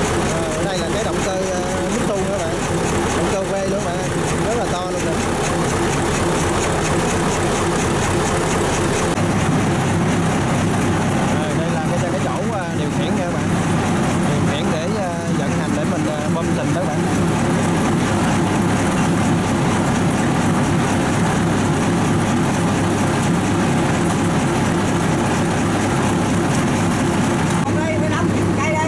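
A large diesel engine runs with a loud, steady rumble.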